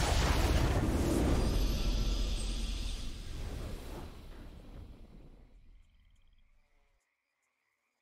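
A booming fanfare swells and then slowly fades away.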